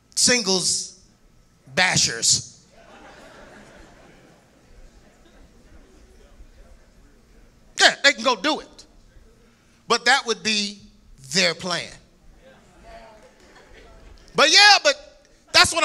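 A man preaches forcefully through a microphone and loudspeakers, his voice echoing in a large hall.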